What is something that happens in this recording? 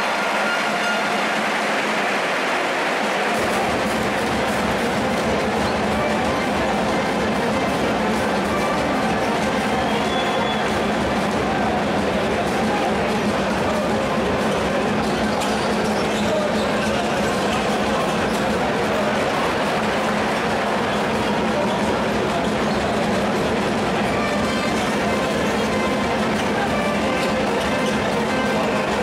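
Basketball shoes squeak on a hardwood floor.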